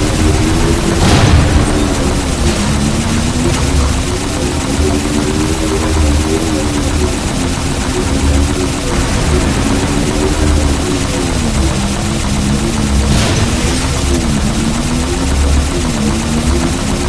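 A hovering vehicle's engine hums steadily, rising and falling in pitch.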